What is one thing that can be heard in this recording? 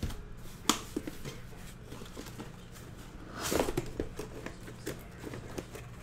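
Cardboard flaps rustle and thump as a box is opened.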